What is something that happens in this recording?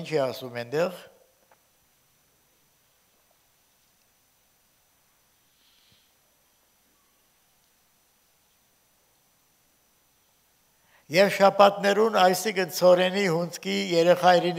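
An elderly man reads aloud calmly through a microphone.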